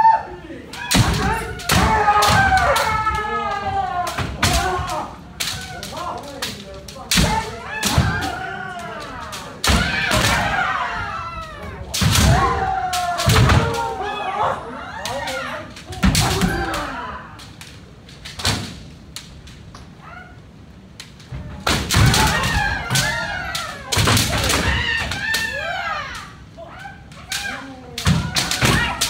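Bamboo swords clack and strike sharply again and again.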